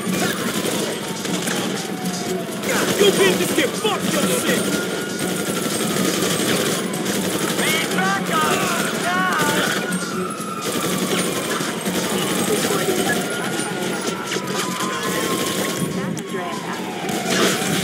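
A police siren wails up and down.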